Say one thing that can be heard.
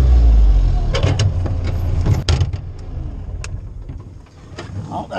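A metal door latch clanks open.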